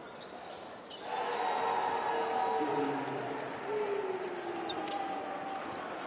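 A large indoor crowd cheers loudly in an echoing arena.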